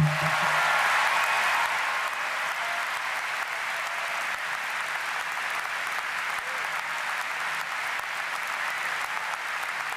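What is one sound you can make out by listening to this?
A large crowd applauds steadily in a big echoing hall.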